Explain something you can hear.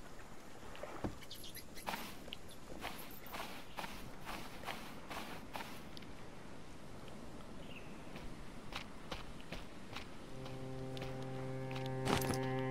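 Footsteps crunch on sand and dry grass.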